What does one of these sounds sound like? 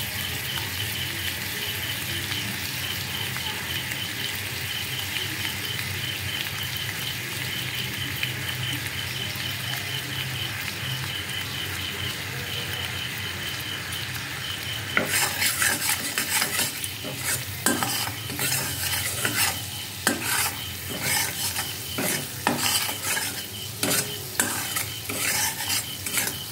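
Oil sizzles and crackles steadily in a hot pan.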